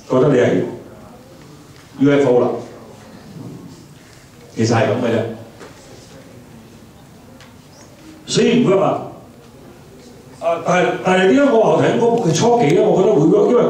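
A man speaks with animation through a microphone, in short bursts with pauses, in an echoing room.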